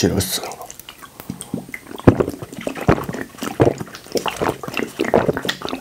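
A young man gulps a fizzy drink loudly, close to a microphone.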